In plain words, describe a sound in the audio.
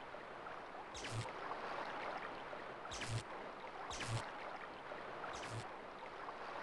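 Soft thuds sound now and then as a creature scurries along.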